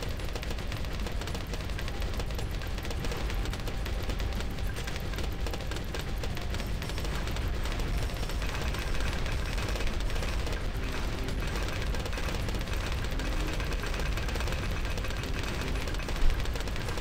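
Rapid game pops and explosions crackle constantly.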